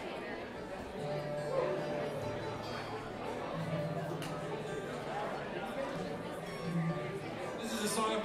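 An upright bass is plucked in a steady low pulse.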